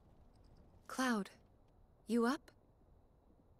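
A young woman calls out softly from behind a door.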